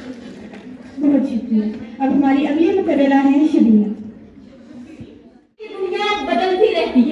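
A woman speaks through a microphone and loudspeakers in an echoing hall.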